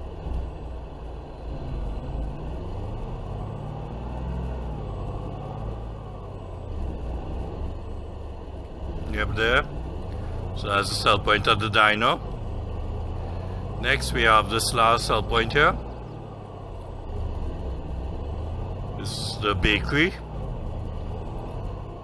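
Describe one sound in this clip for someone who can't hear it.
A pickup truck engine hums steadily as it drives.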